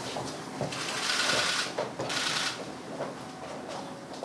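Footsteps shuffle as people walk out through a door.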